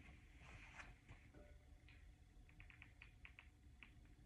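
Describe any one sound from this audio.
Sheets of paper rustle close by.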